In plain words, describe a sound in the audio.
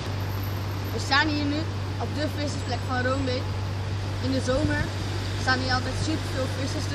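A young boy talks calmly, close by.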